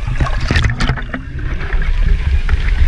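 Water laps and sloshes at the surface.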